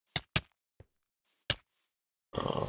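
Short sharp hits land in quick succession.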